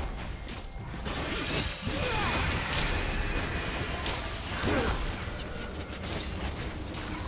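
Game spell effects crackle and whoosh in a fight.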